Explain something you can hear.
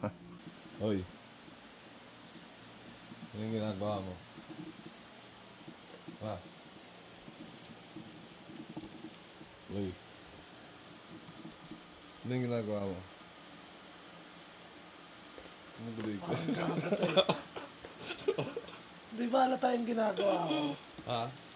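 A young man talks in short, lively bursts close by.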